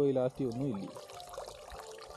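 A net splashes as it is pulled out of water.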